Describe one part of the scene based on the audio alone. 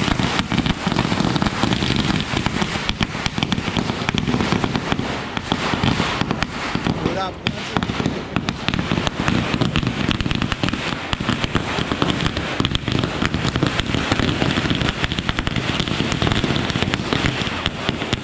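A fountain firework hisses and sprays sparks.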